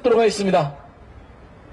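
A man speaks into a microphone over a loudspeaker outdoors.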